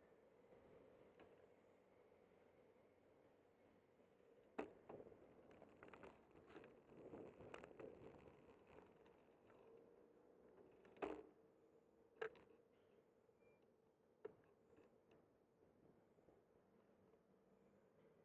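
Wind rushes past outdoors as a bicycle rolls along.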